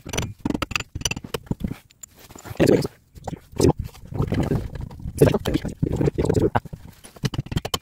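A metal brake drum scrapes and clanks.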